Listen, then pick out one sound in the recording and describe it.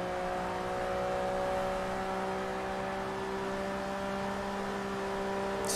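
A sports car engine roars steadily at high revs, slowly climbing in pitch.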